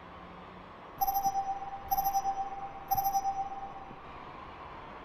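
Short electronic beeps count down, once per second.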